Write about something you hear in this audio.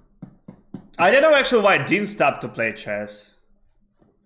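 A young man speaks briefly and animatedly into a close microphone.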